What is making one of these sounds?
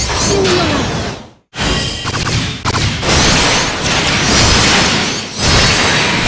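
Guns fire in rapid bursts with loud explosions.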